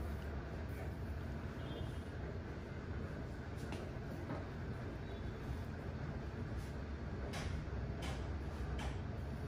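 Hands rub and rustle through hair close by.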